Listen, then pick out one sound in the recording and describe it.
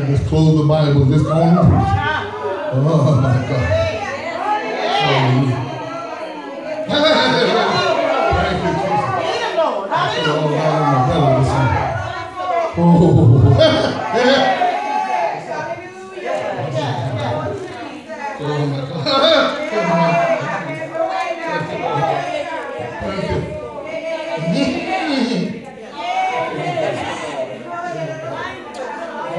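A man preaches with animation through a microphone in a large echoing hall.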